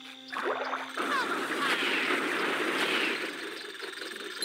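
Bubbles burst and fizz with a bright sparkling sound.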